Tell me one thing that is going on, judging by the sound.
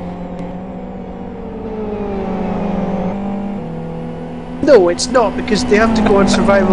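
Racing car engines drone steadily and shift in pitch as the cars pass.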